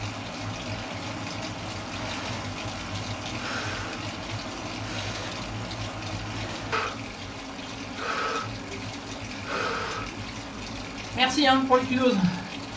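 A bicycle on an indoor trainer whirs steadily as a rider pedals.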